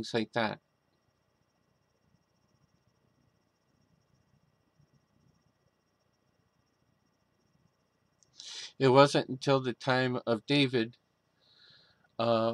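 A middle-aged man speaks calmly and closely into a microphone, with long pauses.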